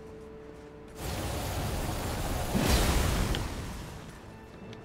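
A fiery blade swooshes through the air.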